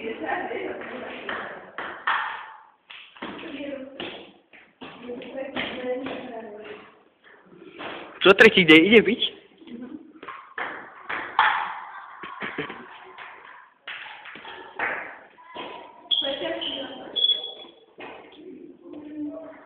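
A table tennis ball clicks back and forth on a table and paddles.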